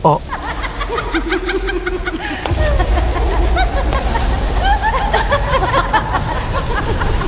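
A swarm of bats squeaks.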